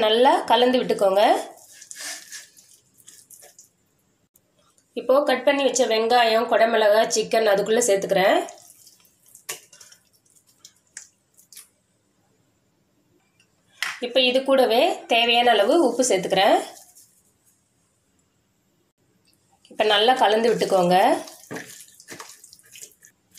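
A hand squelches through a thick, wet paste.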